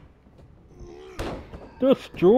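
A body slams heavily onto a ring mat.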